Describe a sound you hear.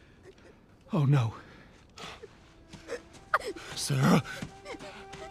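A man cries out in distress nearby.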